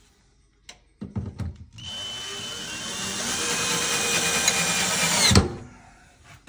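A power drill whirs as it drives a screw into wood.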